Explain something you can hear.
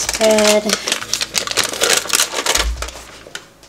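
Paper crinkles as butter is unwrapped.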